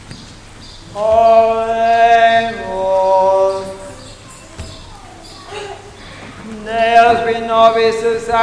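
A group of men sings a chant that echoes through a large hall.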